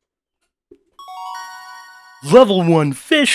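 A bright, rising game jingle chimes.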